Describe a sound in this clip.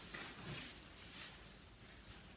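Hands rub together softly.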